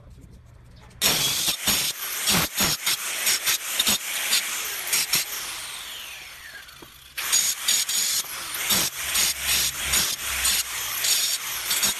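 A power cutter grinds loudly through a brick.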